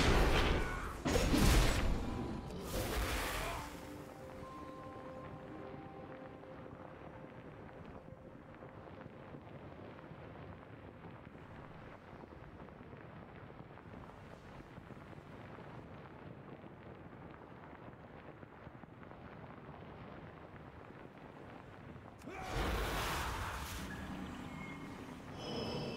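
Fantasy combat sound effects burst with magical whooshes and crackles.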